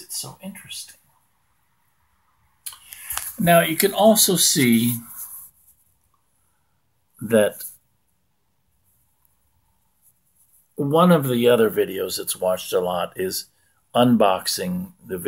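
An older man speaks calmly, close to the microphone, in short bursts with pauses.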